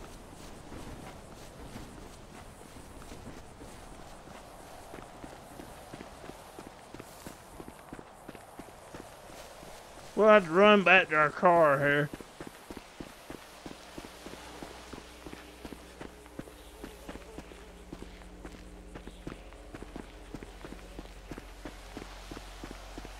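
Footsteps crunch steadily over dry grass and dirt.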